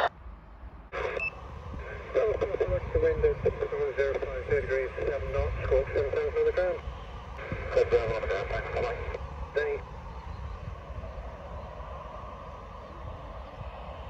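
A jet engine roars steadily in the distance.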